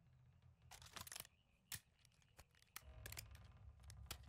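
A gun clicks and clacks as shells are loaded into it.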